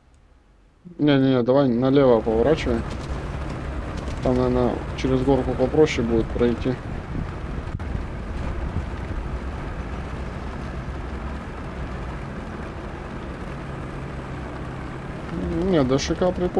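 Tank tracks clank and rattle as the tank drives.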